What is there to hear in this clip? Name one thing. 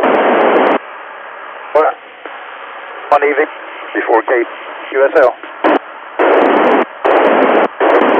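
A radio hisses with loud bursts of static.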